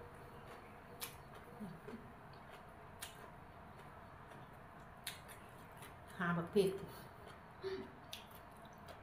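Food rustles and clicks as fingers pick at it.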